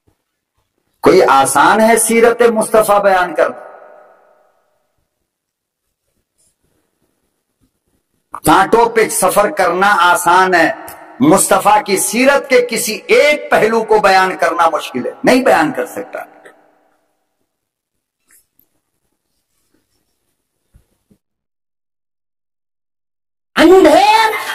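An elderly man preaches with fervour into a microphone, his voice echoing through loudspeakers.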